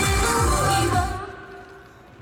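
Loud music plays through loudspeakers outdoors and stops abruptly.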